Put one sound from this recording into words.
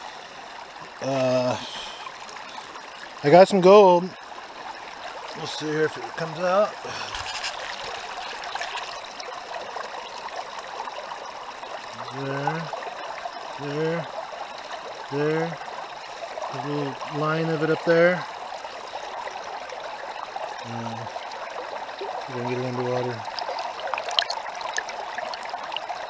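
A shallow stream flows over rocks.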